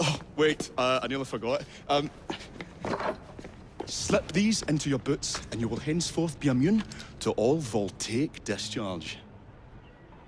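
A man speaks animatedly and close by.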